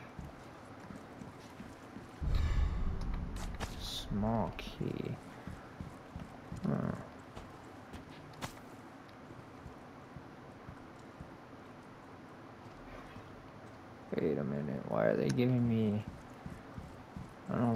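Footsteps tread slowly on a hard stone floor.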